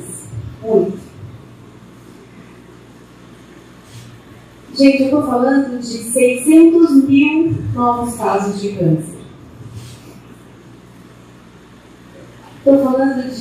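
A woman speaks calmly through a headset microphone, with pauses.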